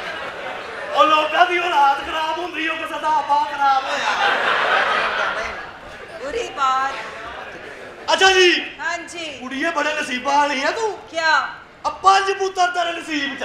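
A man speaks loudly and with animation through a loudspeaker in a large hall.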